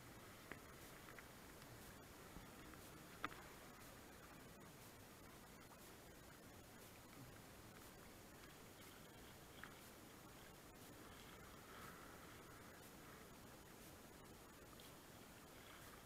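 A paddle splashes and dips into the water.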